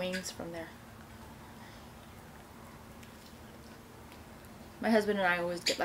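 A young woman chews food close to the microphone.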